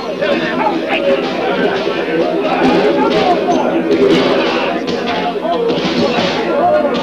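A crowd of men shout and yell in a loud brawl.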